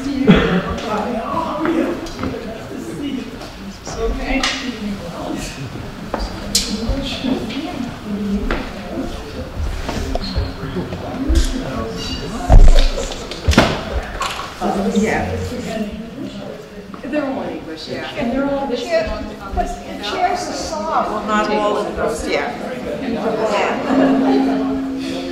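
Several adults chat quietly at once in an echoing room.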